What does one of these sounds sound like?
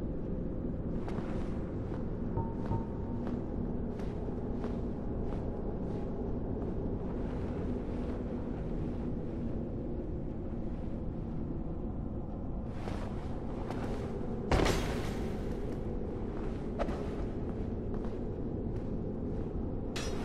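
Footsteps tap along a narrow wooden beam.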